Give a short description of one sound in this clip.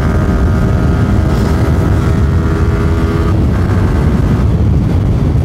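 Another motorcycle engine whines nearby and fades.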